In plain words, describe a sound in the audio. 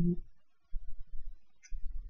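A young woman sips from a mug.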